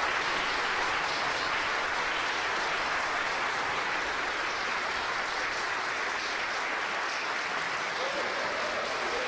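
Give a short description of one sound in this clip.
A symphony orchestra plays in a large reverberant church.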